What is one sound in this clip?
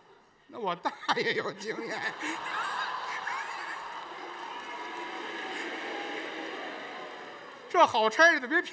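An audience laughs and applauds in a large hall.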